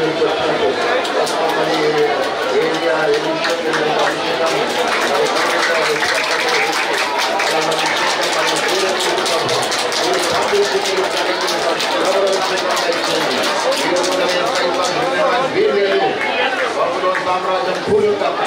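A man prays aloud into a microphone, heard through loudspeakers in a large echoing hall.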